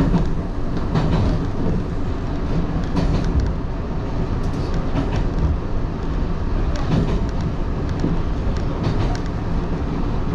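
Train wheels click and clatter over rail joints.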